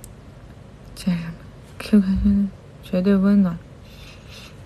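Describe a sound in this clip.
A young woman speaks in short bursts close to a microphone.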